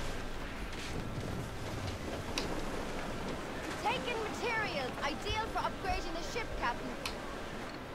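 Waves crash and spray against a ship in a storm.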